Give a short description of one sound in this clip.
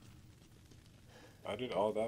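A fire crackles.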